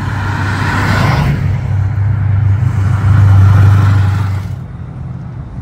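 A hot rod coupe's engine rumbles as it drives past.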